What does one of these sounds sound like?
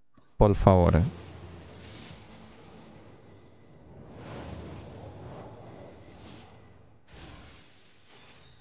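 A game plays a whooshing sound as shooting stars streak across the sky.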